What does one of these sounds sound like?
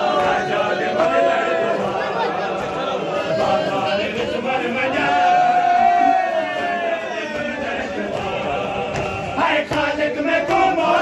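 A large crowd of men chants loudly in unison.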